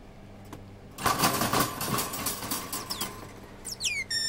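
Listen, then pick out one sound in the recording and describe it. A wire cage rattles loudly.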